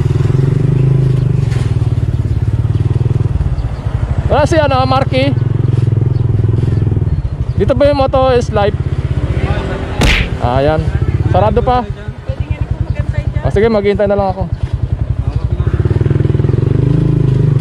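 A motorcycle engine idles and putters steadily close by.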